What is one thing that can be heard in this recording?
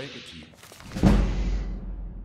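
A heavy book thumps open and its pages rustle.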